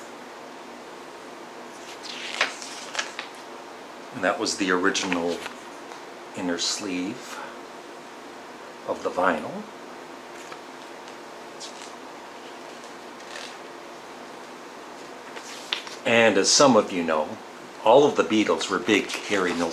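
A paper booklet rustles as its pages are handled.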